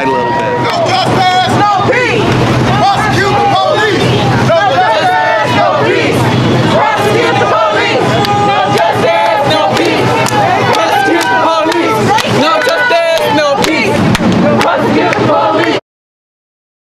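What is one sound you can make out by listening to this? A crowd of protesters chants loudly outdoors.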